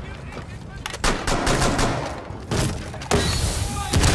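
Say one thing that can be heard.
A blade whacks into a wooden barricade with heavy thuds.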